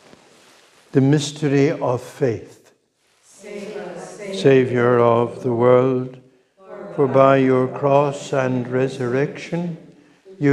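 A man chants through a microphone in an echoing room.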